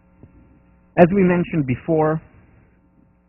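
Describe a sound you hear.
A man speaks calmly through a headset microphone in a large echoing hall.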